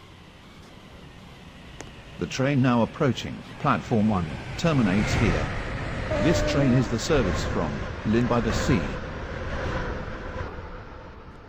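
A train rumbles closer and rushes past loudly.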